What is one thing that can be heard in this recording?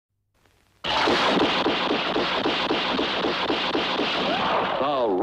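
A rifle fires rapid shots in a steady rhythm.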